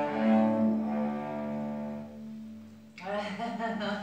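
A cello plays long, sustained bowed notes in a room.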